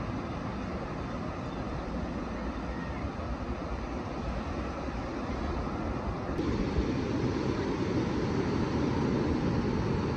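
Ocean waves break and wash onto the shore outdoors.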